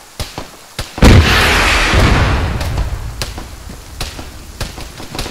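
An explosion booms loudly and rumbles off.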